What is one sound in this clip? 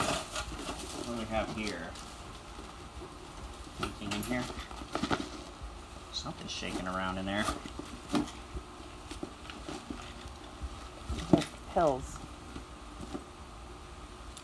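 A leather handbag rustles and creaks as it is handled.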